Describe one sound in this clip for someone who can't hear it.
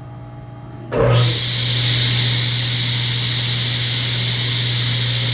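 A table saw starts up and runs.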